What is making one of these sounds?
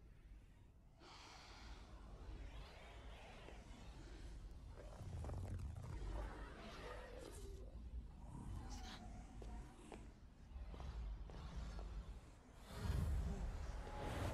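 A magic portal swirls with a deep, rushing rumble.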